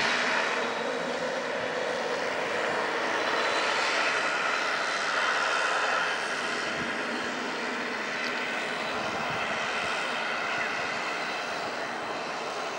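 Propeller engines roar steadily as a plane rolls along a runway.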